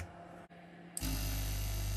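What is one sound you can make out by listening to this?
A larger air compressor drones loudly and steadily.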